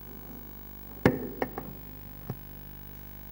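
A chair scrapes and knocks as a man stands up from a table.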